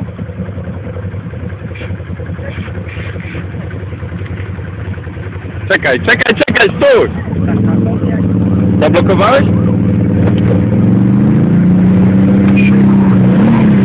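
A quad bike engine idles and then revs loudly.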